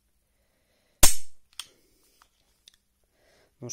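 A pistol's metal mechanism snaps with a sharp click.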